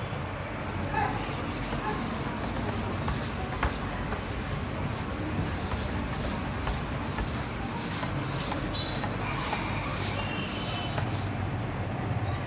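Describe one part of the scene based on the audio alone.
A cloth rubs briskly across a chalkboard, wiping it clean.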